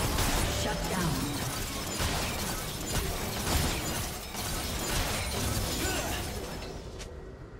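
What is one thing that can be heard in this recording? Video game combat effects of spells and hits crackle and clash rapidly, then fade away.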